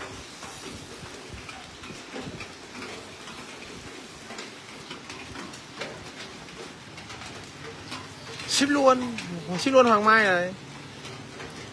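Fat sizzles and embers crackle under a whole pig roasting over charcoal.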